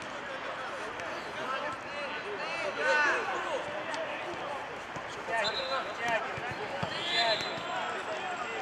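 Players call out to each other across an outdoor pitch.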